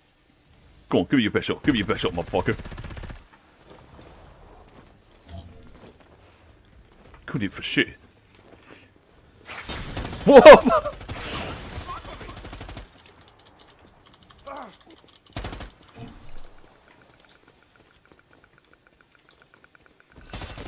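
An automatic rifle fires rapid bursts of gunshots.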